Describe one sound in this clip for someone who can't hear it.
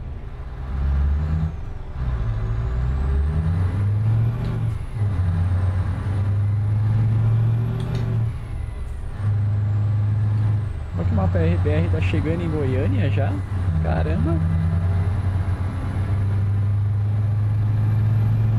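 A truck engine hums steadily at a low pitch.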